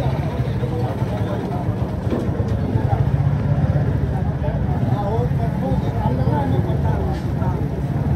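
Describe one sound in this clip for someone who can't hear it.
Men talk nearby in a busy street.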